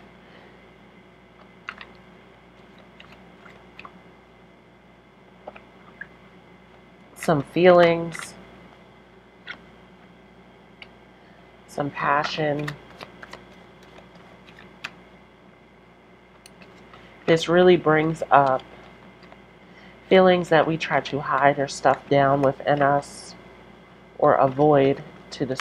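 Playing cards riffle and slide softly as they are shuffled.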